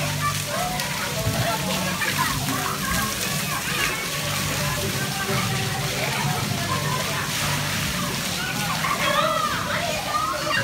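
Young children shout and squeal nearby.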